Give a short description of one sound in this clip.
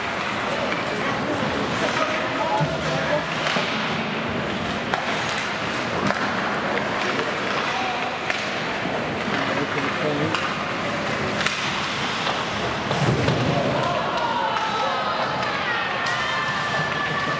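Skates scrape across the ice in a large echoing rink.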